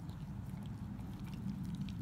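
A dog licks at a bone.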